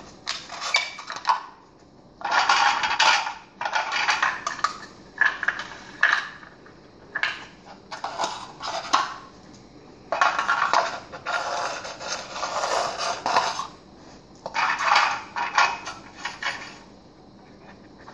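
Plastic toy blocks clatter and scrape on a hard floor.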